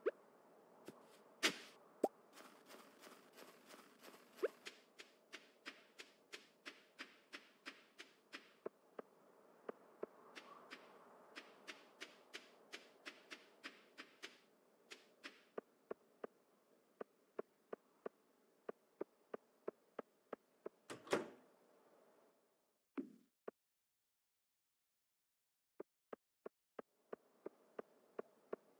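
Quick footsteps crunch over snow in a steady rhythm.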